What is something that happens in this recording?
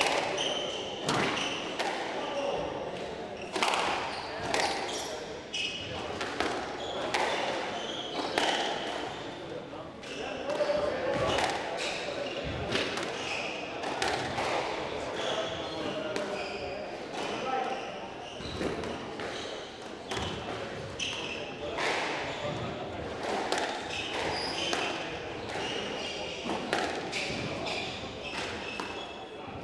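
A squash ball smacks sharply against the walls in a quick rally, echoing around the court.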